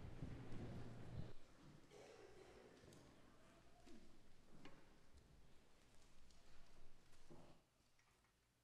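People in a large echoing hall shuffle and rustle in their seats.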